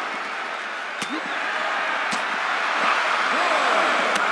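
Sharp thuds of bodies hitting each other ring out a few times.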